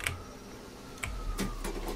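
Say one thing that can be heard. Water sprays out in a hissing gush.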